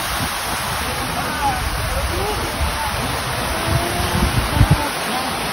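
Fountain water splashes and rushes steadily nearby.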